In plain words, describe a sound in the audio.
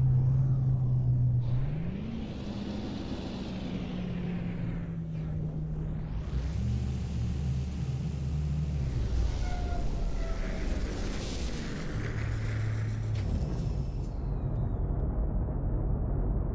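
A heavy walking machine's engine hums and whirs, its pitch shifting now and then.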